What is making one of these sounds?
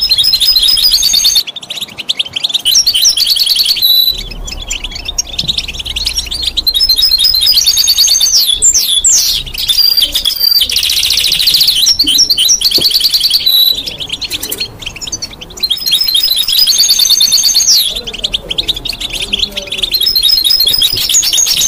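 A small bird sings close by in rapid high chirps and trills.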